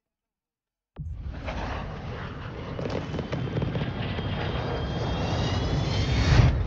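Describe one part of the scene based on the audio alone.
A large propeller plane's engines roar steadily.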